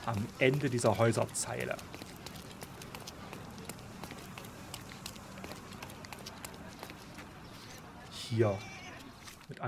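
Footsteps patter quickly on cobblestones.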